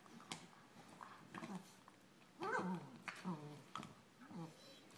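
A Labrador puppy makes playful growling yelps.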